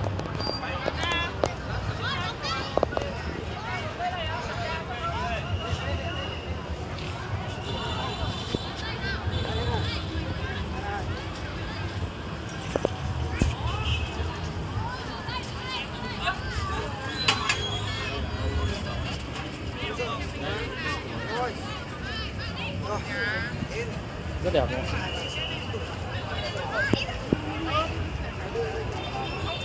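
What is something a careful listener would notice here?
A crowd of people chatters and talks nearby outdoors.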